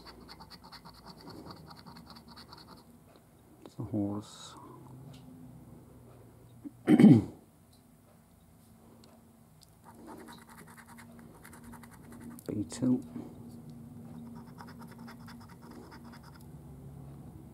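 A coin scratches rapidly across a card.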